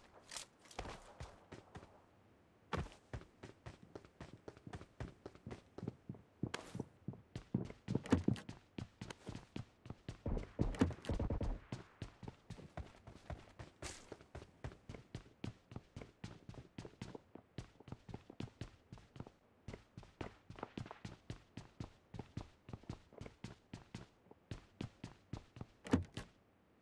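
Footsteps thud quickly and evenly on hard floors and ground.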